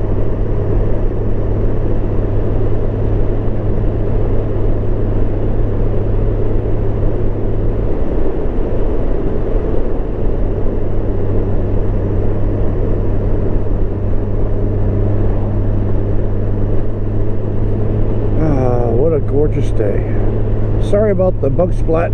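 A motorcycle engine hums steadily while cruising.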